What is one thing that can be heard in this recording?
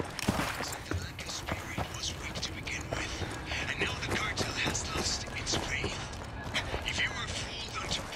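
Footsteps crunch on dry dirt.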